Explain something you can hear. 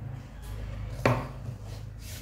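A tool clacks down onto a stone surface.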